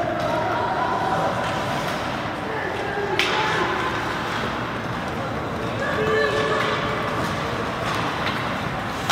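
Ice skates scrape and hiss across the rink.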